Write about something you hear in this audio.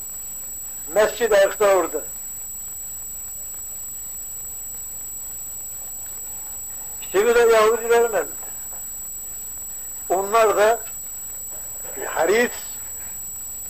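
An elderly man speaks slowly in short, separate phrases.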